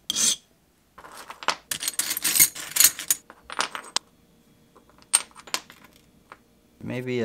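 Pieces of glass clink on a table.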